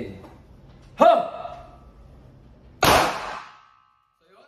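A pistol fires loudly indoors, echoing briefly.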